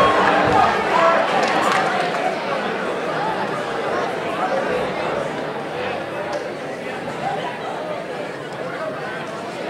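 A rock band plays loudly with electric guitars, drums and keyboard.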